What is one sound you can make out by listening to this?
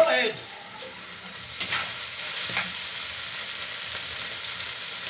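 Meat sizzles in a hot frying pan.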